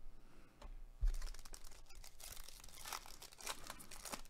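A foil card wrapper crinkles and tears as it is opened.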